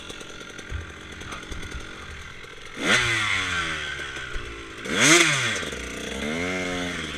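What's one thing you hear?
A dirt bike engine revs up and down loudly up close.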